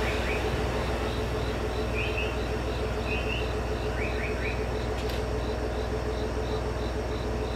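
A train rolls away into the distance.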